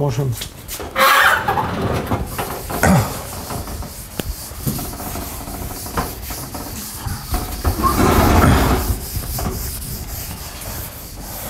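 A cloth rubs across a chalkboard, wiping it.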